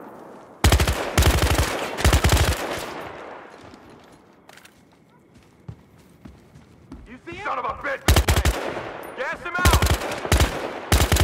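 A rifle fires rapid bursts of shots with loud echoing blasts.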